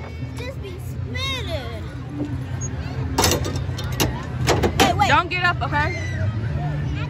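A young child's voice chatters excitedly close by.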